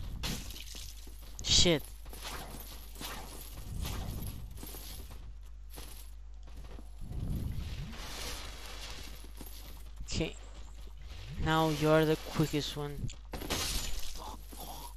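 A young man speaks into a microphone with animation.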